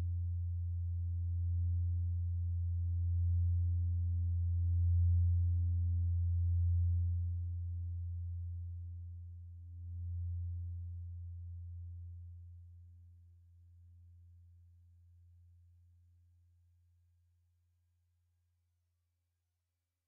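A deep synthesizer drone hums through loudspeakers and slowly fades away.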